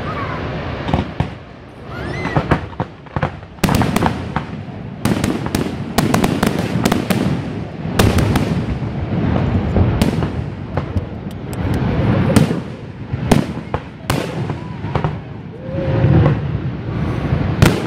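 Fireworks burst overhead with sharp booms and crackles.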